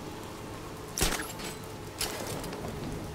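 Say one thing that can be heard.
A grappling hook fires and snaps taut.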